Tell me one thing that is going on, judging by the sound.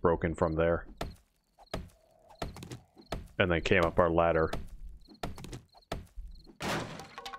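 An axe strikes wood with repeated dull knocks.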